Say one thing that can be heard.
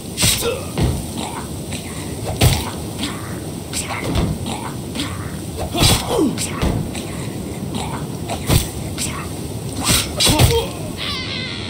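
Weapons clash and strike in a close fight.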